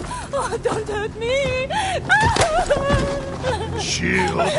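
A woman wails loudly in distress.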